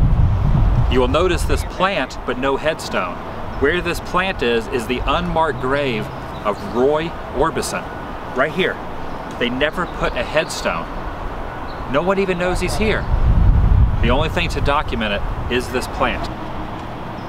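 A man talks calmly and close by, outdoors.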